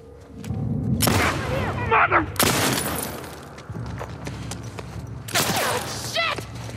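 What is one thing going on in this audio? Gunshots ring out loudly indoors, echoing.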